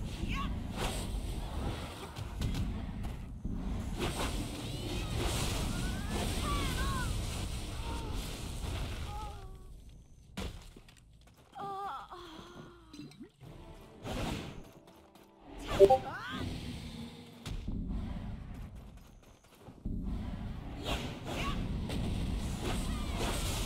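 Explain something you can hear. Swords clash and magic blasts crash in a fast fight.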